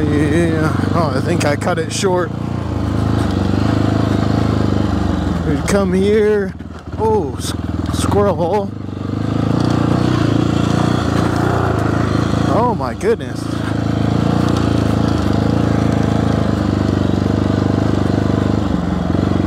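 A motorcycle engine runs with a steady rumble.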